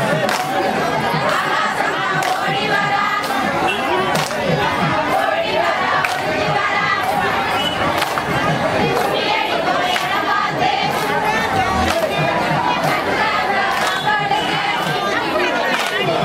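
A group of women clap their hands in a steady rhythm.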